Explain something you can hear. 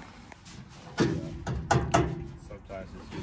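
A hand pats a metal fender.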